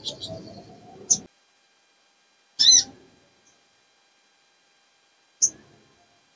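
A small bird chirps in short, sharp bursts close by.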